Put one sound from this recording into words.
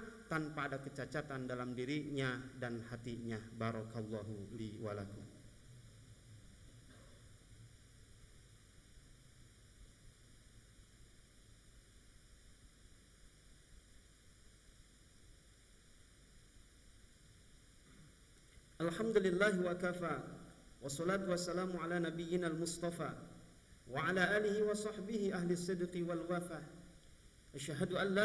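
A young man speaks into a microphone in a measured, preaching tone, with pauses between phrases.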